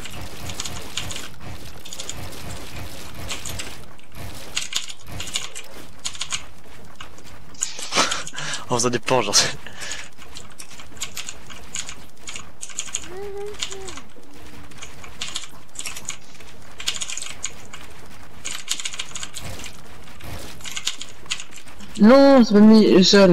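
Keys on a mechanical keyboard clack rapidly.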